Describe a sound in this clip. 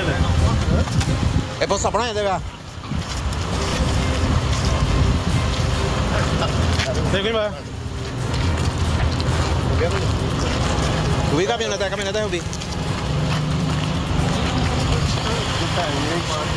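Adult men shout and argue excitedly nearby.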